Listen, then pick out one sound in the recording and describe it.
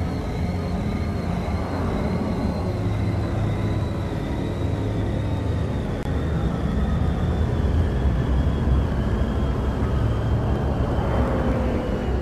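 A hovering speeder hums steadily with a low engine drone.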